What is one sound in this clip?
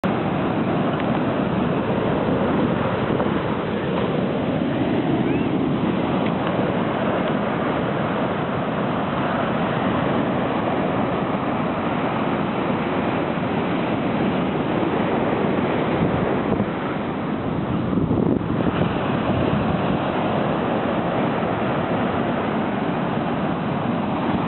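Ocean waves crash and wash onto the shore.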